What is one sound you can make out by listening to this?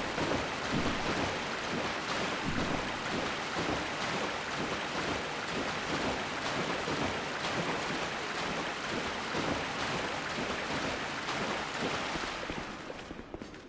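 A figure wades through splashing water.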